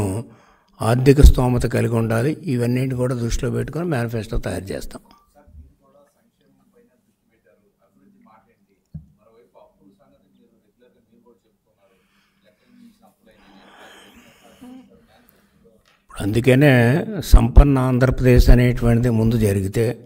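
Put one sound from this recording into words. An elderly man speaks firmly into a microphone, with pauses.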